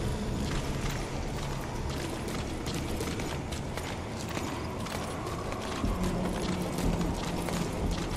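Footsteps shuffle softly over a hard floor.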